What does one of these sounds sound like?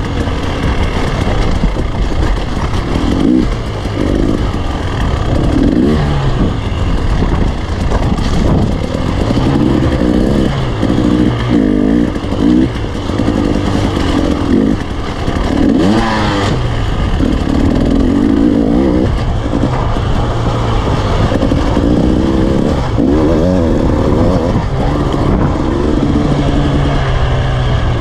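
Tyres crunch over loose rocks and gravel.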